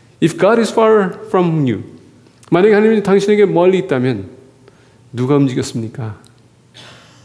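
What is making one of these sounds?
A man speaks calmly into a microphone, heard over a loudspeaker in a large echoing hall.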